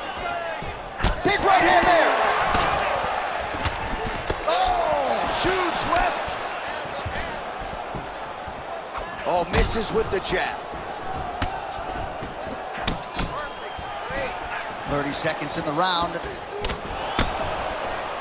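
Punches and kicks thud sharply against bodies.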